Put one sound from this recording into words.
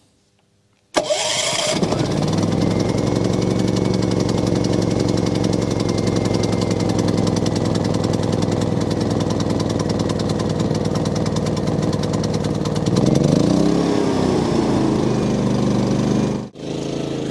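A portable generator starts up and runs with a steady drone.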